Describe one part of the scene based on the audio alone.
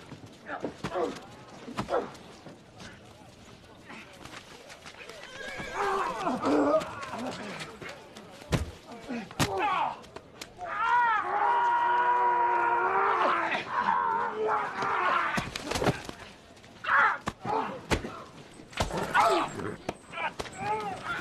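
Heavy blows thud during a fight.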